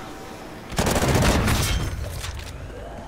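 Gunfire bursts loudly from a rifle.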